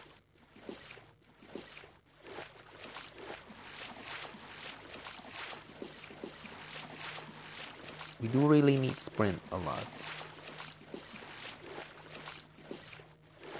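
Footsteps run quickly and evenly across a hard floor.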